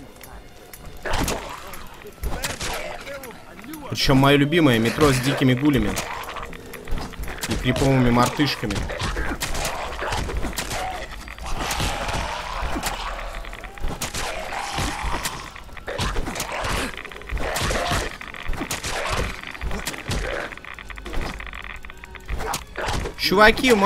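Heavy blows thud and crunch on bodies.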